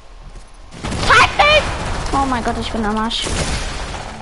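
A gun fires sharply in a burst of loud shots.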